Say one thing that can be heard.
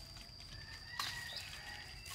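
A pineapple snaps off its stalk.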